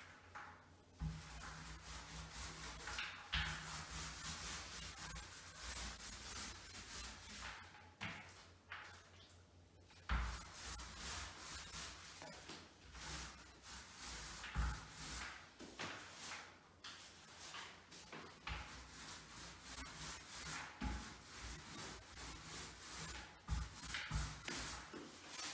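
A paint roller rolls and squelches against a wall in repeated strokes.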